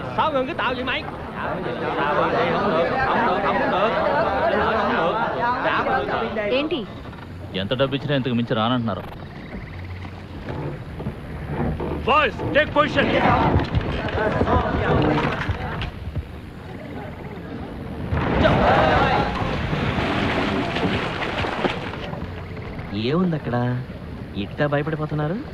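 A crowd of men and women shout and murmur excitedly outdoors.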